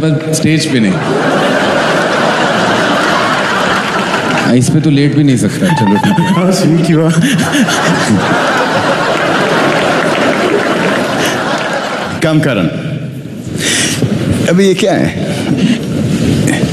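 An audience laughs and cheers loudly in a large hall.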